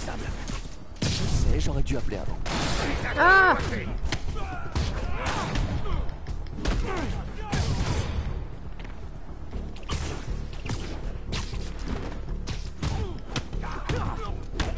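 Video game combat sound effects thud and whoosh.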